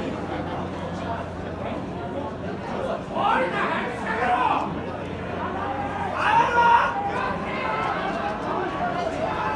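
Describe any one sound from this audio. A crowd of spectators murmurs and chatters close by, outdoors.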